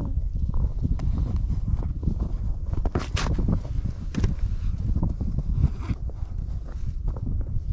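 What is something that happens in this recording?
Boots crunch on snow and ice.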